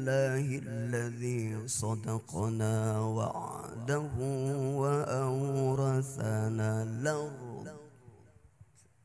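A middle-aged man sings a melodic chant loudly into a microphone, with an echoing sound.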